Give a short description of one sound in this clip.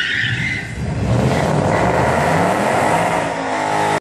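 A car engine revs nearby.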